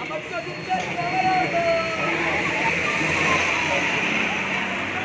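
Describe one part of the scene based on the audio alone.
Traffic hums on a busy street.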